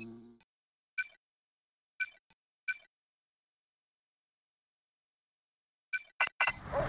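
Short electronic menu blips sound now and then.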